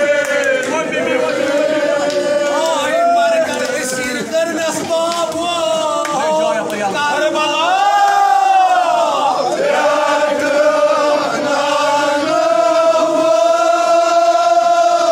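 A dense crowd of voices is heard.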